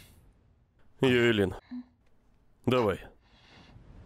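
A young man speaks softly.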